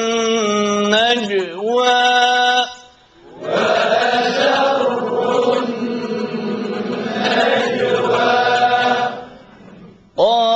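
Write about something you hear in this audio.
A man chants in a long, wavering melodic voice through a microphone.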